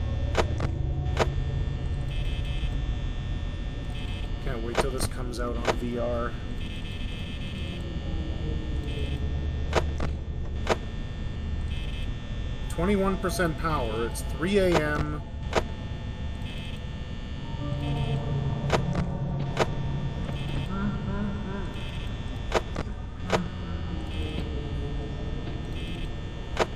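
An electric desk fan whirs.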